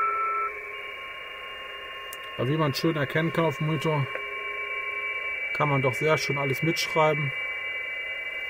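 A steady, high electronic tone plays from a laptop speaker.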